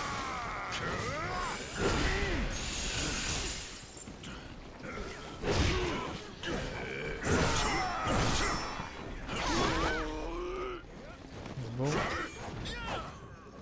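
Swords clash and clang in a fast fight.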